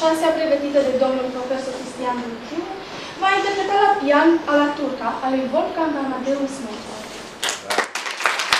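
A young woman speaks clearly into a microphone, announcing.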